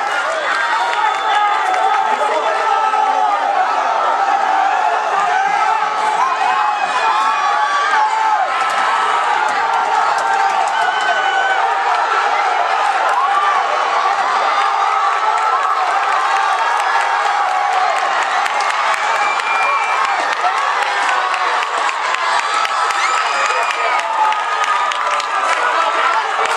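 A crowd of people chatters and cheers outdoors.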